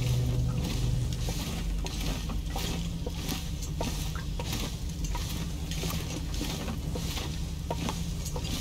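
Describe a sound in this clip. Footsteps crunch slowly on loose stone.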